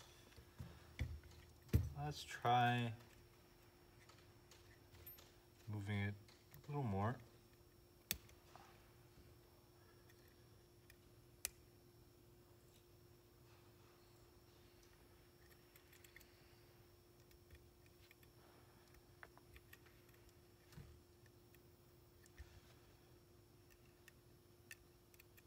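Small plastic and metal parts click and tap as they are handled.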